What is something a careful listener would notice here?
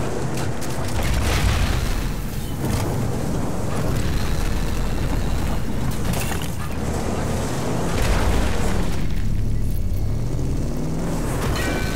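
Tyres crunch over gravel and debris.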